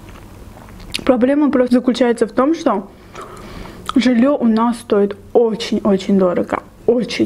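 A young woman speaks calmly and softly close to a microphone.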